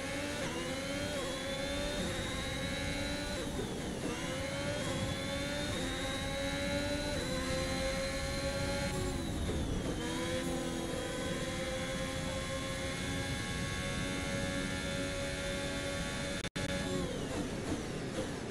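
A racing car engine whines at high revs, rising through the gears and dropping briefly at each shift.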